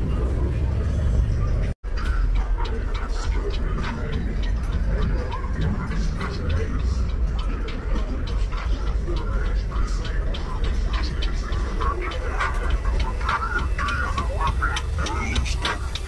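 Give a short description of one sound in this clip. Loud music with booming bass plays from a car's sound system outdoors.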